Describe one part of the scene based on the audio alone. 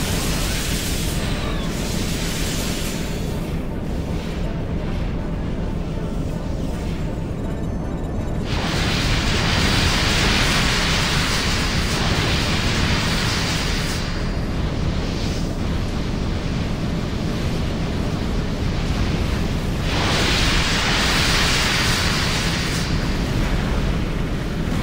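A jet thruster roars loudly.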